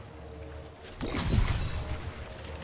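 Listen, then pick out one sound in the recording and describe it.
A rifle fires a shot in a video game.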